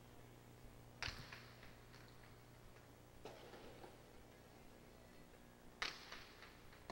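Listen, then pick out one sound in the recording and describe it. A ball smacks sharply against a hard wall in a large echoing hall.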